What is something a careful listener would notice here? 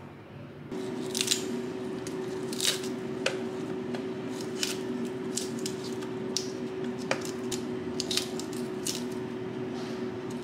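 Crisp lettuce leaves snap and tear.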